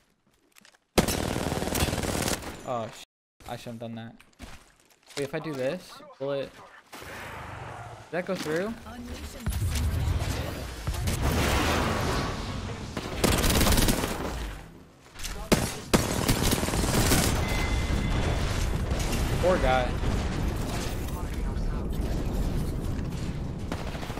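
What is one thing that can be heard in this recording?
An automatic rifle fires rapid bursts of gunfire.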